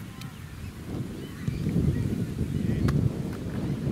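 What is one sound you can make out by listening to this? A ball thumps once as it is kicked.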